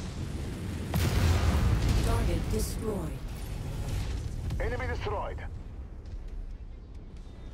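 A large explosion booms and crackles with fire.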